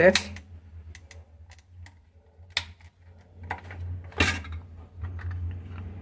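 Plastic parts click and creak as a housing is pried apart.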